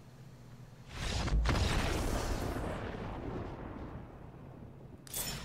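A triumphant game fanfare swells up and fades.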